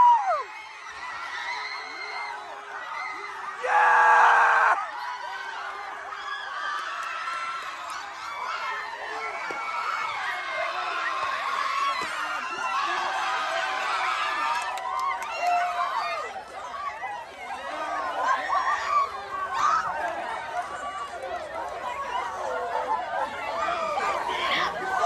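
Young women shout and laugh close by.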